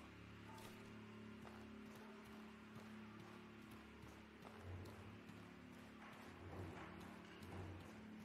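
Footsteps run on grass and stone.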